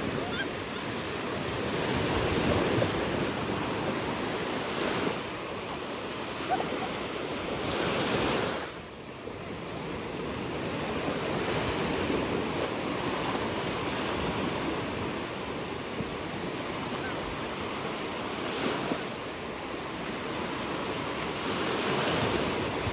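Small waves wash and splash steadily close by.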